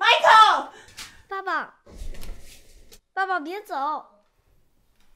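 A young boy speaks pleadingly, close by.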